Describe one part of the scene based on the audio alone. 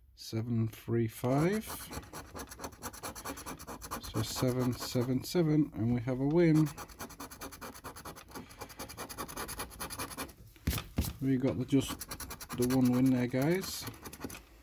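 A coin scratches briskly across a card.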